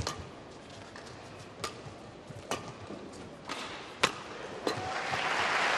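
Rackets strike a shuttlecock with sharp pops in a rally.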